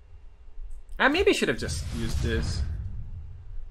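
A shimmering magical chime rings out and swells.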